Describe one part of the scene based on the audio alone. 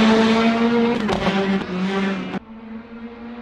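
A racing car engine pops and crackles as it shifts gear.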